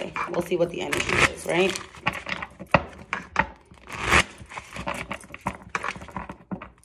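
Playing cards riffle and snap as they are shuffled.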